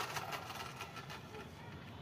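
A plastic toy truck rolls across a tiled floor.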